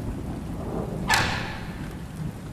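A woman knocks on a wooden door.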